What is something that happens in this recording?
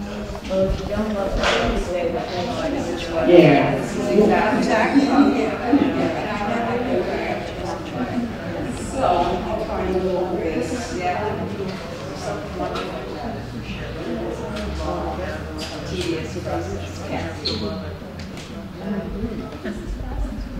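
A small crowd murmurs and chats quietly.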